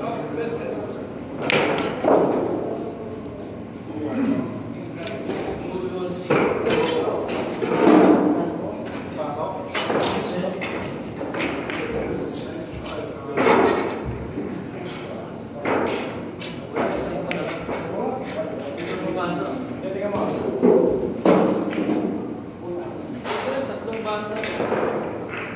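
Young men talk casually nearby.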